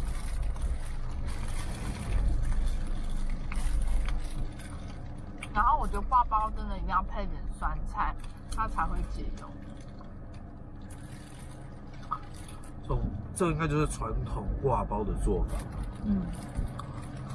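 Plastic wrappers rustle and crinkle close by.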